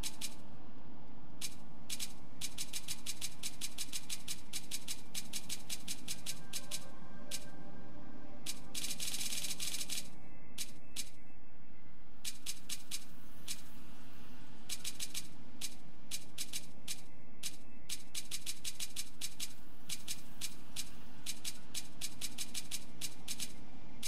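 Quick menu clicks tick rapidly, one after another.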